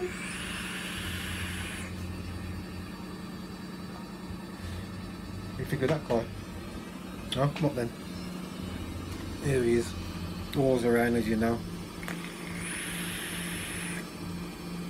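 A man exhales smoke in a long, breathy hiss.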